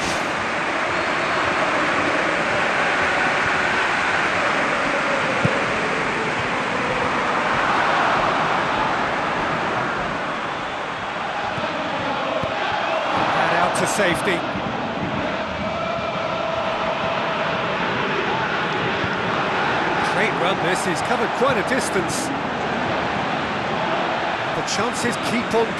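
A large crowd roars and chants steadily in a stadium.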